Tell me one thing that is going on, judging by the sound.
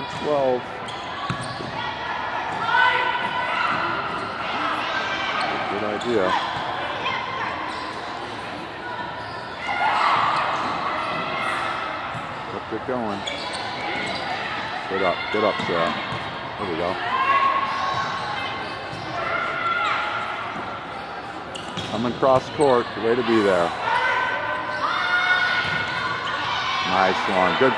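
Young women call out and shout to each other across an echoing hall.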